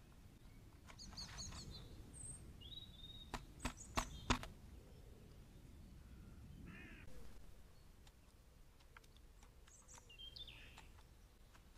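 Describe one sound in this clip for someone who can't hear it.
A magpie pecks and taps at a feeder.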